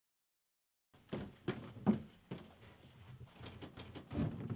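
An interior door handle turns.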